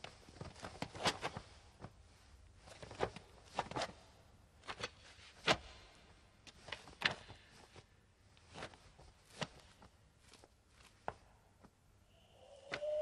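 Bodies thud and scuffle on a hard floor in a struggle.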